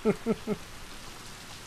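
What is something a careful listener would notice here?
A man laughs briefly into a close microphone.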